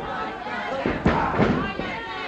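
A body slams heavily onto a wrestling ring's mat.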